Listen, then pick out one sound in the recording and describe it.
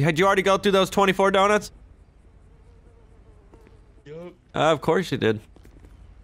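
A young man speaks casually through a microphone.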